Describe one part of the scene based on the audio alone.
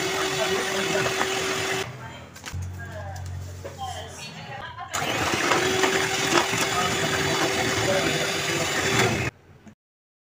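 An electric hand mixer whirs steadily as its beaters whip a batter.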